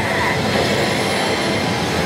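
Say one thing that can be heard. A hand presses a button on a slot machine.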